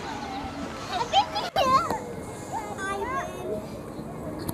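Young girls laugh and squeal.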